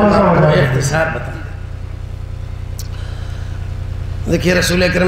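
An elderly man speaks with animation into a microphone, heard through loudspeakers.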